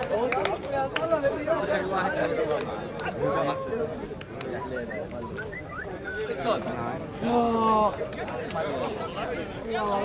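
Several men talk and chatter nearby outdoors.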